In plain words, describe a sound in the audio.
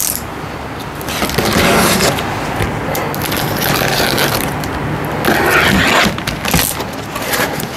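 Tape rips off a cardboard box.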